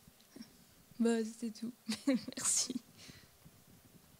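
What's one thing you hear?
A woman laughs briefly.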